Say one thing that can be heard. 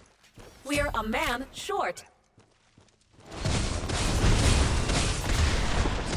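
Magic blasts and hits crash during a fight.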